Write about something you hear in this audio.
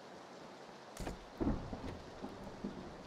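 A door swings open with a creak and a knock.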